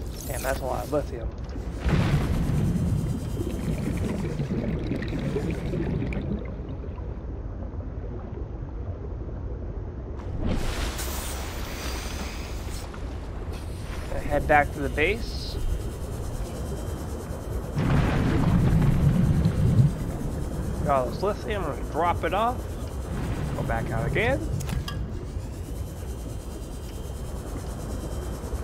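A small submarine's engine hums steadily underwater.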